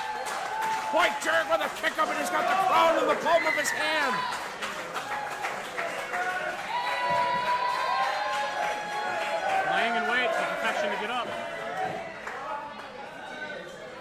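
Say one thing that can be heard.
A crowd claps along.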